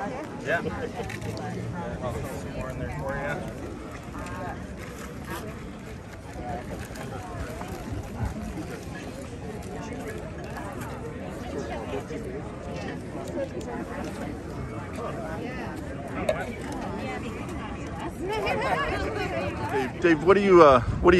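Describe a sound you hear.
A woman speaks calmly nearby, outdoors.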